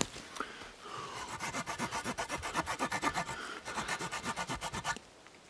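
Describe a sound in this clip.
A small saw rasps quickly back and forth through wood.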